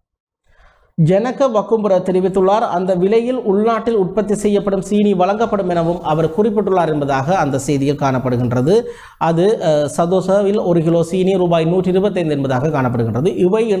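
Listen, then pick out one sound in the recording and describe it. A man speaks steadily and clearly into a microphone.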